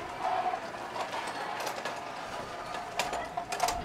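A wheelchair rolls and rattles over a paved floor.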